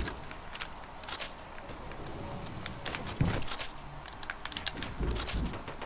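Wooden walls snap into place with sharp clacks.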